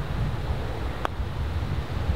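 A putter taps a golf ball with a sharp click.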